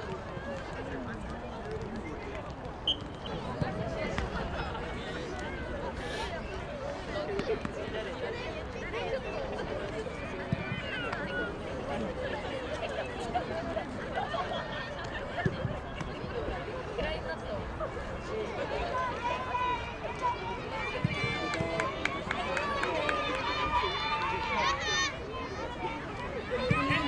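A crowd of spectators chatters outdoors at a distance.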